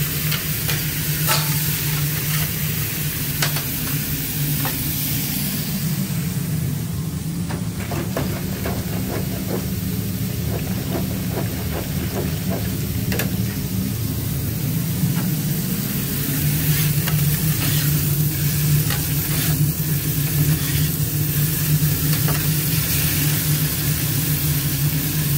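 A metal spatula scrapes and clinks against a griddle.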